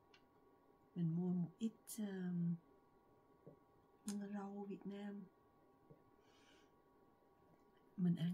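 A middle-aged woman speaks calmly and close to a microphone, in short phrases.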